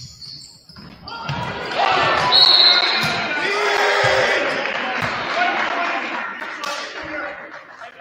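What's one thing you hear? A crowd of spectators cheers loudly in an echoing gym.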